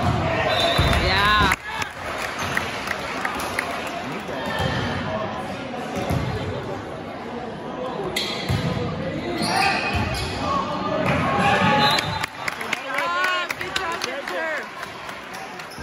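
Shoes squeak on a hard gym floor.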